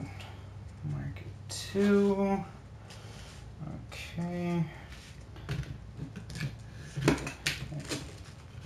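Small plastic pieces and cards click and rustle as they are handled on a table.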